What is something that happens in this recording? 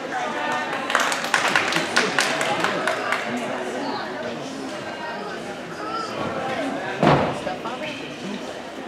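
A gymnast's hands thump and slap on a pommel horse.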